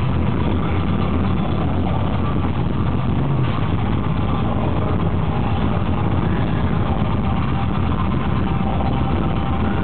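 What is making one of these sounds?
A man growls and screams into a microphone over loudspeakers.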